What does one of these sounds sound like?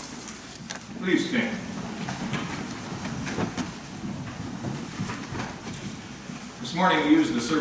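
A man speaks calmly in a large echoing room.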